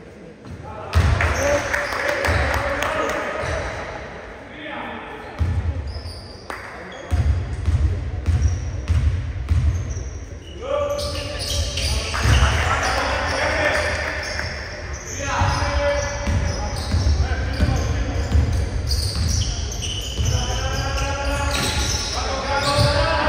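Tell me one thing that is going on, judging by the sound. Spectators murmur and call out in an echoing hall.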